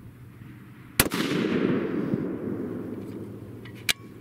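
A rifle fires a single loud shot that echoes away outdoors.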